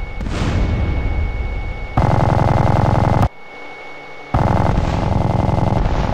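An aircraft engine drones and thumps overhead.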